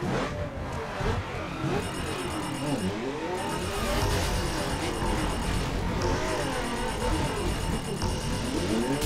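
A sports car engine revs and roars up and down in pitch.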